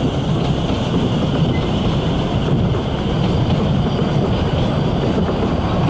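A steam locomotive chuffs heavily.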